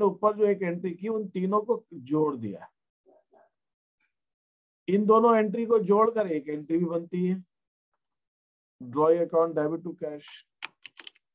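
A man explains calmly into a close microphone, in short bursts with pauses.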